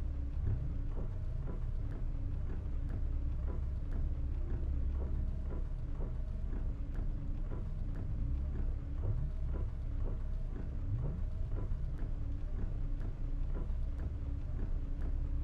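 A bus engine rumbles steadily.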